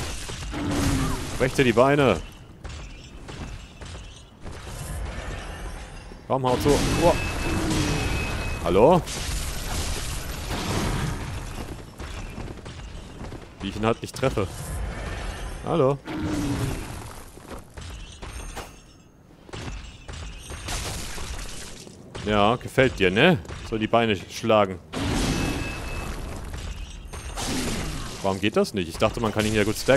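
Weapons slash and strike with heavy impacts.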